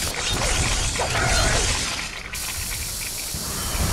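A fiery blast bursts with a low rumble.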